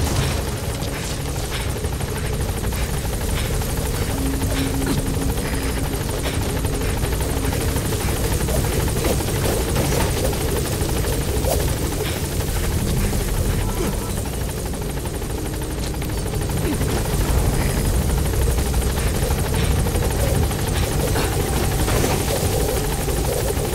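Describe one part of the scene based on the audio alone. A helicopter's rotors thump and roar steadily overhead.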